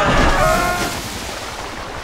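Water splashes heavily.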